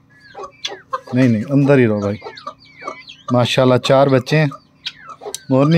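Peafowl call loudly nearby.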